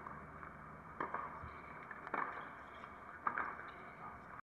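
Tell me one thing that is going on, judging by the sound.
A few hands clap sharply at a distance.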